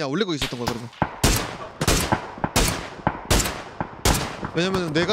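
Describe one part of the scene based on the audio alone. Rifle shots ring out in quick succession.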